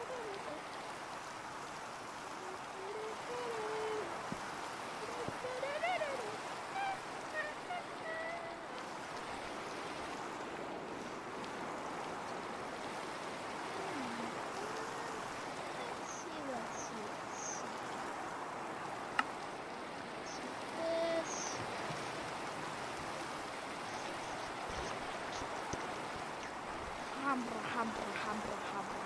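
A young boy talks close to a microphone.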